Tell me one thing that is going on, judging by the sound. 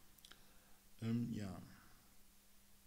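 A man speaks briefly and loudly into a nearby microphone.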